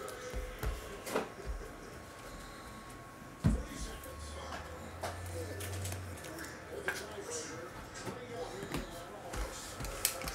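A cardboard box taps and knocks on a table.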